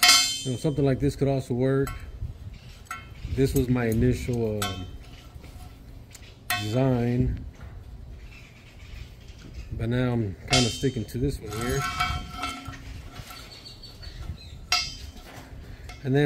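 Metal brackets clink against a steel pipe.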